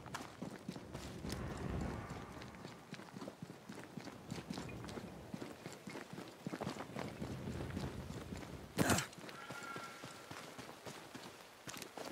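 Footsteps run quickly over dirt and stone.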